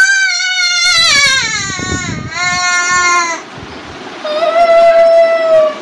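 A young boy wails loudly up close, his cry falling in pitch and breaking off, then rising again.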